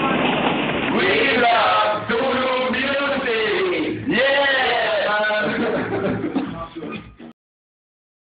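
A young man sings loudly and with animation, close up.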